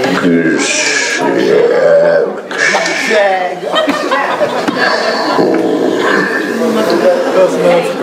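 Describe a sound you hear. Men and women laugh and chat close by.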